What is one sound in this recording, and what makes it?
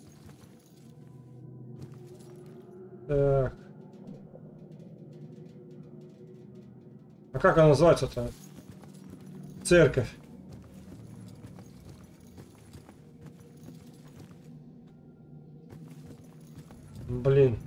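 Footsteps walk slowly across a floor indoors.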